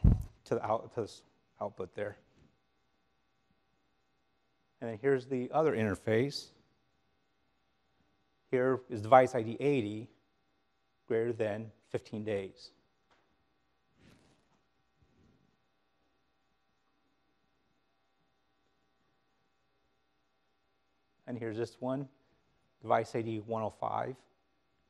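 A man speaks calmly through a microphone, pausing often.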